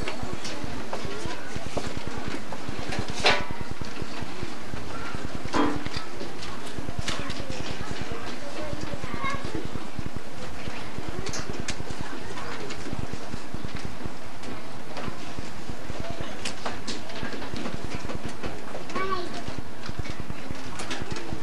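A large choir of children sings together.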